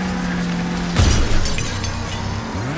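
A car slams into a concrete pillar with a loud crash.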